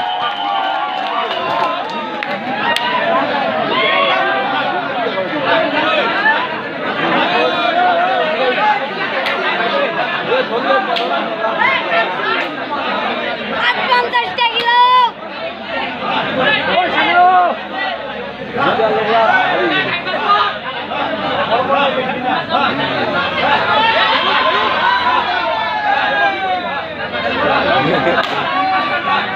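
A large crowd of men and boys shouts and cheers loudly outdoors.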